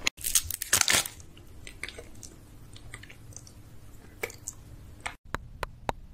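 A man sucks and mouths a soft snack close to a microphone.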